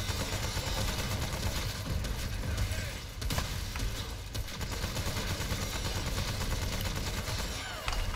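A flamethrower roars in steady bursts.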